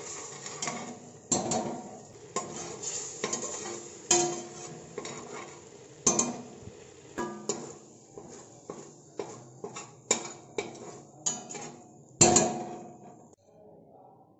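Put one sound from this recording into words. A metal ladle scrapes and clinks against a steel pot.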